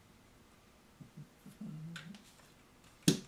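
A plastic model scrapes as it is turned on a table.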